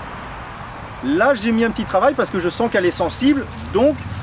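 A man talks calmly and clearly, close by.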